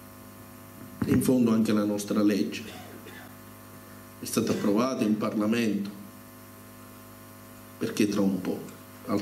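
A man speaks into a microphone through a loudspeaker in a hall, pausing between phrases.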